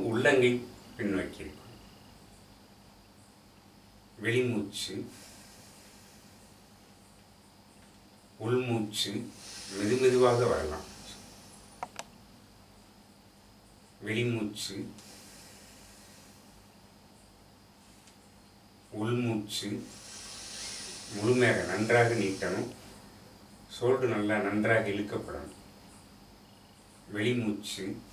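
A man calls out instructions in short bursts nearby, with pauses between.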